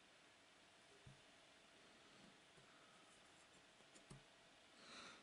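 Jigsaw puzzle pieces click softly as they are picked up.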